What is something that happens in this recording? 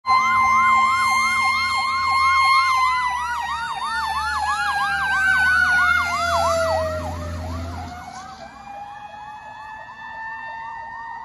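A fire engine's siren yelps rapidly and wails, dropping in pitch as the engine passes and fades away.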